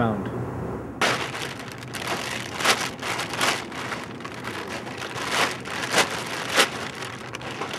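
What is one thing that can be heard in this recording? Plastic bags rustle and crinkle as they are handled.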